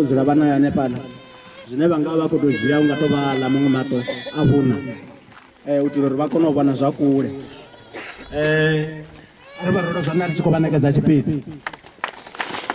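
A man speaks loudly into a microphone, heard through loudspeakers outdoors.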